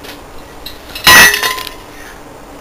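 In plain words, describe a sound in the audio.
A metal lid clanks against a metal surface.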